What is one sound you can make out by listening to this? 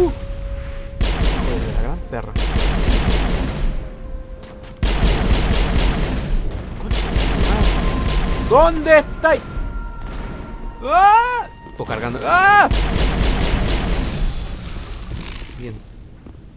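Heavy gunfire bursts out in rapid, rattling volleys.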